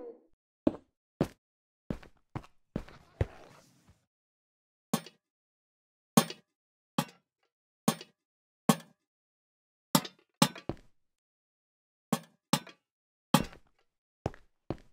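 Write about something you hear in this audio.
Game blocks and lanterns are placed with short, sharp knocks, one after another.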